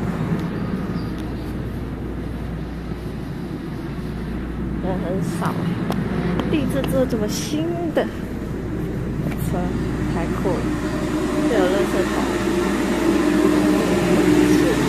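A train hums and rumbles steadily.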